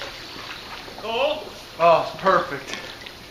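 A man calls out from a pool.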